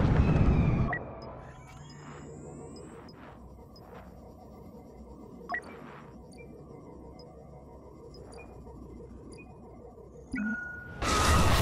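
Soft interface clicks and beeps sound now and then.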